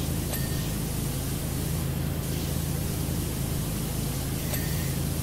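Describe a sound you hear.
A pressure washer sprays water in a steady, hissing rush.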